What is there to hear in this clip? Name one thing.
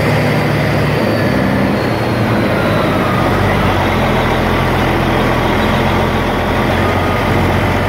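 Truck tyres hum on asphalt.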